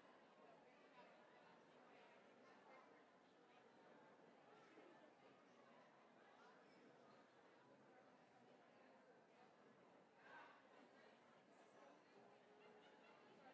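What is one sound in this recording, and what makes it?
A crowd of men and women chatter and murmur in a large echoing hall.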